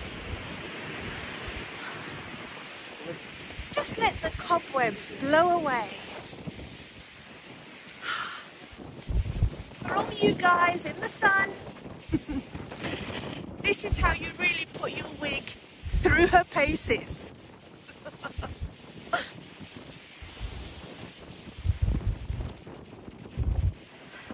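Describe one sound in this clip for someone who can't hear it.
Strong wind blusters and rumbles against the microphone.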